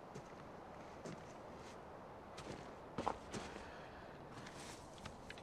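Footsteps crunch in snow close by.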